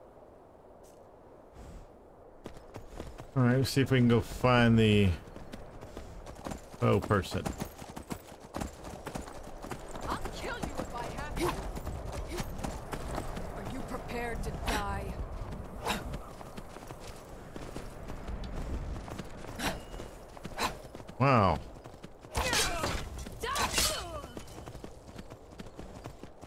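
A horse's hooves thud steadily over snow.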